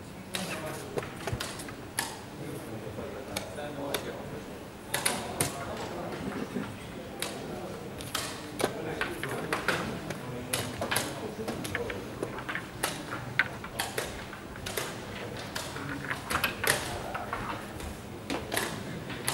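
Chess pieces click and clack on boards in a large echoing hall.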